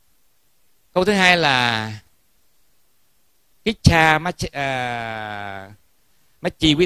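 A middle-aged man chants in a slow, drawn-out voice through a microphone.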